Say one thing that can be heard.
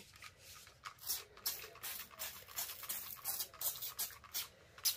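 A spray bottle hisses in quick bursts.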